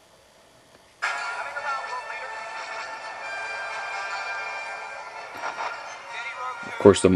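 A film soundtrack plays through a small tablet speaker.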